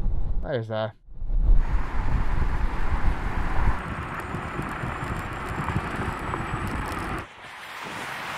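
A car's tyres roar on tarmac as it speeds away.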